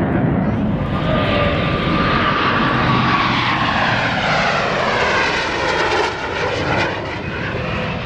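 Jet engines roar closer and sweep past with a falling pitch.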